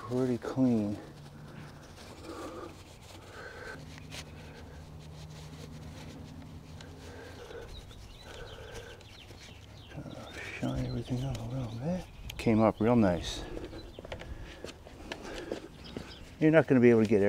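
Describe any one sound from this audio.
A cloth rubs against a small metal part.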